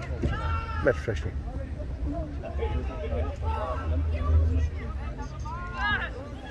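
Young spectators close by call out and cheer excitedly.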